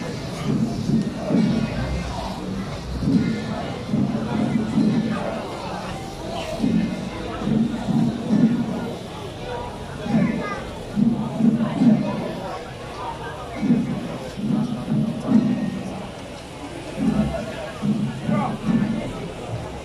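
Flares hiss and crackle steadily.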